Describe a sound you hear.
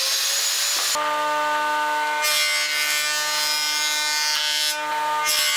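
An electric jointer planer hums loudly while planing a board.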